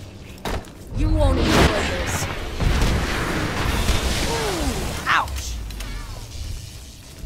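A creature screeches and wails.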